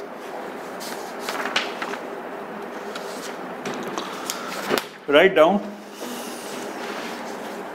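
Paper sheets rustle in a man's hands.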